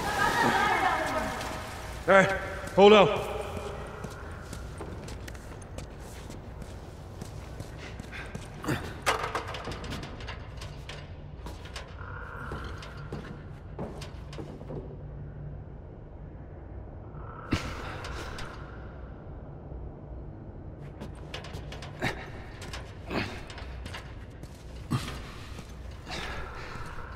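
Footsteps scuff over stone and metal.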